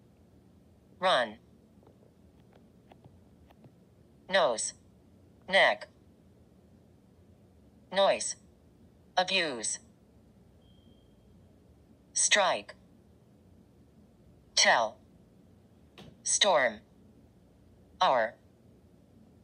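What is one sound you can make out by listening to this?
A synthetic voice from a phone's small speaker speaks single short words, one at a time, with pauses in between.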